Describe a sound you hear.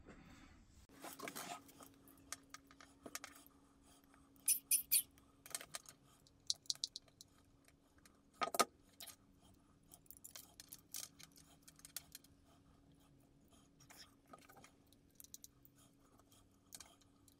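Small plastic parts click and rattle as hands handle them close by.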